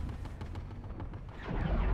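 A mounted gun fires a rapid burst.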